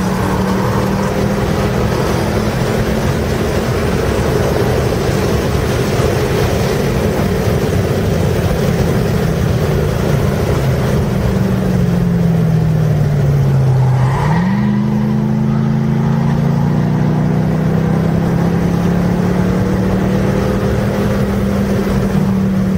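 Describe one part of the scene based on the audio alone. A car engine roars loudly from inside the car, drops in pitch as the car slows, then climbs again as it speeds up.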